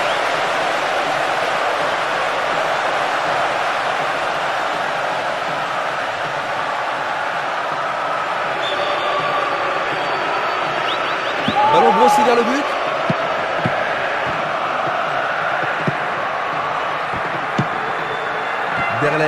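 A large stadium crowd roars and murmurs.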